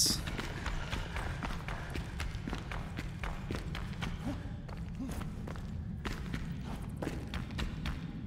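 Footsteps crunch steadily over rocky ground.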